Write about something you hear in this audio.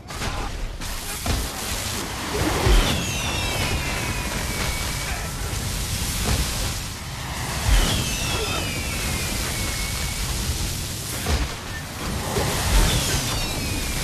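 Magic spells whoosh and crackle loudly.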